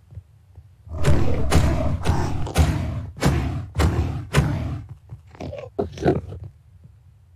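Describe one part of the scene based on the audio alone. Blows land on a creature with sharp thuds.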